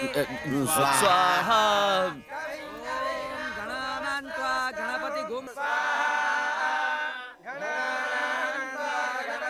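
A young man sings with feeling.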